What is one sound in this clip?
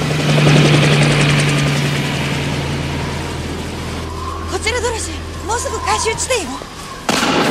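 A helicopter drones overhead.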